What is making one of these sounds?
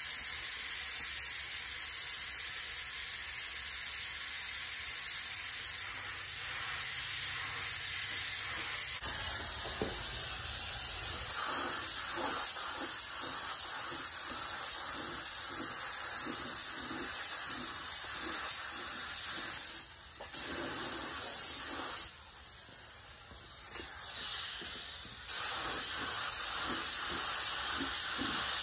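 A spray gun hisses steadily, close by.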